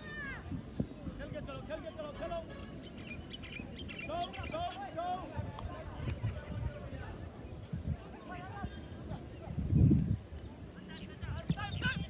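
Football players shout to each other in the distance across an open field.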